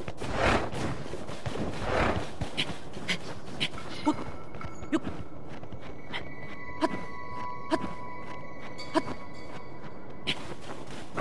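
Hands and boots scrape and knock against rock in a steady climbing rhythm.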